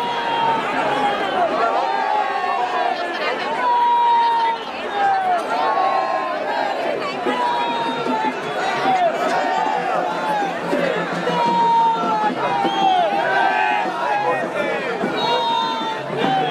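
Men whistle sharply above a crowd.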